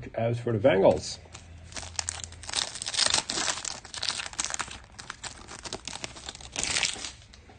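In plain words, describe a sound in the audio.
A plastic wrapper crinkles and rustles as it is torn open.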